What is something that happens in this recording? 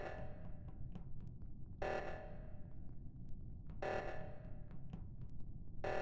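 An alarm blares in short bursts about every two seconds.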